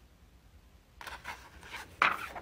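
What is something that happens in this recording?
Pages of paper rustle as they flip.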